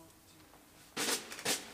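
A band strikes up loudly in a large hall.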